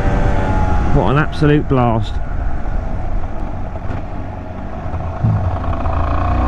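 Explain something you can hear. A motorcycle engine revs sharply up and down a few times.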